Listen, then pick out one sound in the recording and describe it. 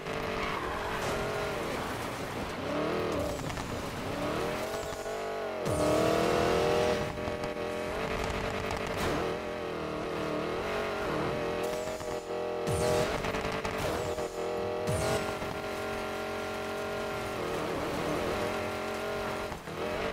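Tyres skid and hiss on loose dirt.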